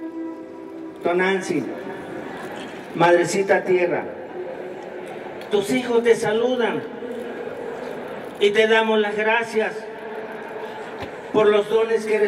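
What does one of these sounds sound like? A man calls out loudly in short bursts through a loudspeaker.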